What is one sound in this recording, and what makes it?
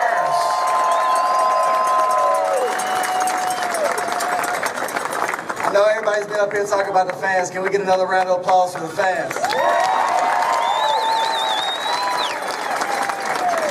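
A crowd cheers and whistles loudly outdoors.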